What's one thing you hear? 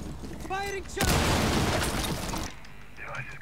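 A grenade explodes with a loud burst.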